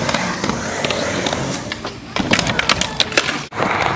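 A skateboard clatters onto concrete after a fall.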